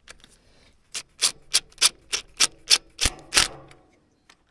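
A cordless impact driver rattles in quick, sharp bursts.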